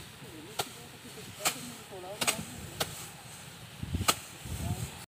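Dry straw rustles and crackles as it is gathered by hand.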